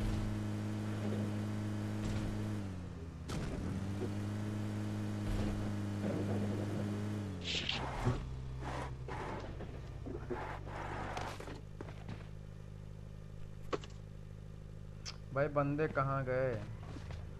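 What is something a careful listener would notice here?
A vehicle engine hums steadily and revs.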